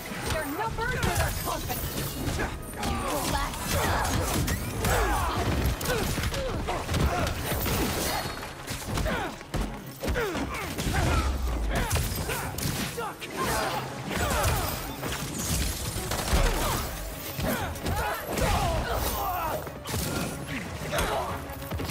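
Punches and kicks thud in a fast brawl.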